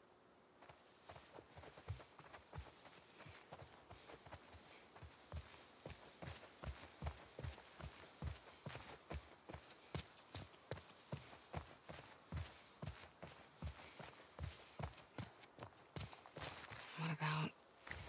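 Footsteps run through dry grass.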